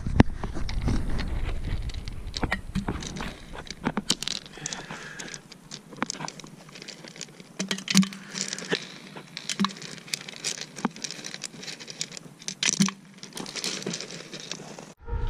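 Pebbles clatter and crunch as a hand shifts them.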